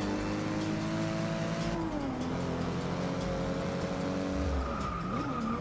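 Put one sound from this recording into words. A car engine roars at high revs and drops in pitch with each gear change.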